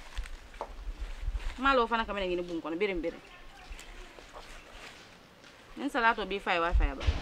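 Leaves rustle as hands sort greens.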